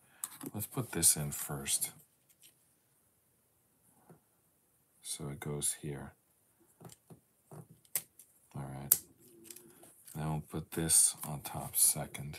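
Plastic building pieces click and rattle as hands handle them.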